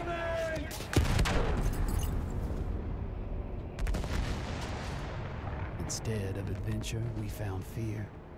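A huge explosion booms.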